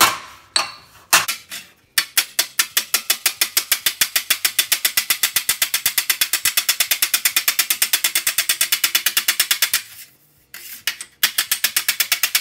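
A hammer taps rapidly on sheet steel, ringing metallically.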